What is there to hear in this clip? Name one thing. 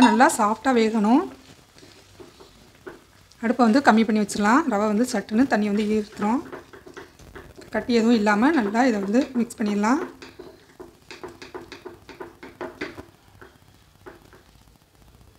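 A silicone spatula stirs thick semolina dough in a pan.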